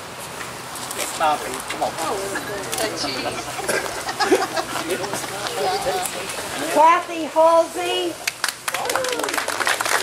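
A man talks loudly with animation to a gathered crowd.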